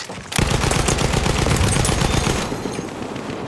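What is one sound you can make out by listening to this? A heavy machine gun fires a rapid, loud burst.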